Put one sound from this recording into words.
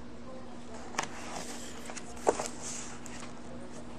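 A book's pages rustle as they are turned.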